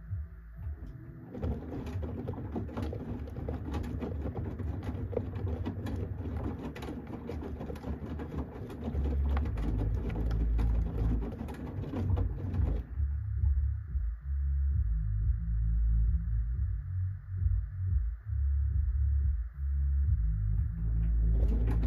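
A washing machine hums with a low rumble.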